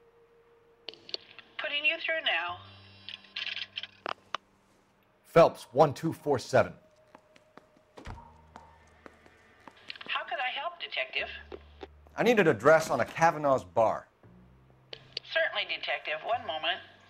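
A woman answers faintly through a telephone earpiece.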